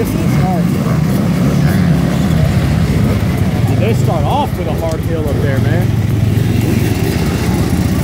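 Dirt bike engines idle and rumble close by.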